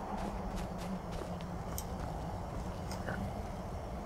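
A fire crackles close by.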